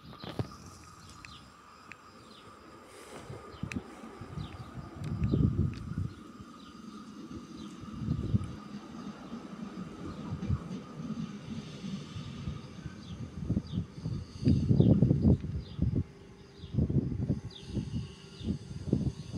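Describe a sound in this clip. A passenger train approaches along the track.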